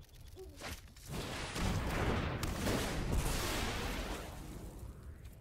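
A magical spell effect whooshes and swells.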